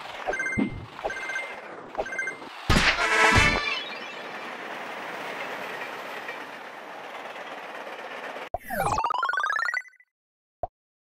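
Game sound effects jingle and chime as coins are collected.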